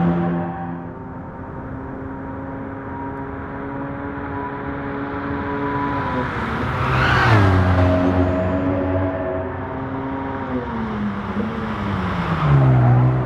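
A car engine roars steadily at high revs, dropping in pitch as the driver shifts gears.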